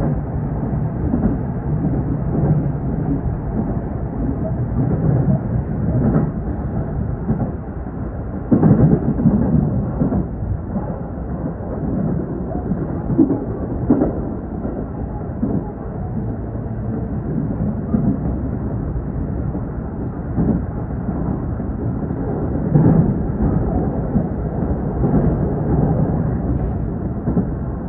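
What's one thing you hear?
A train rumbles steadily along the tracks, heard from inside the cab.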